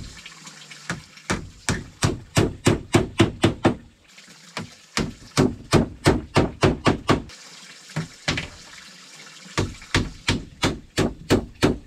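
A hammer strikes wood in quick bursts of knocks.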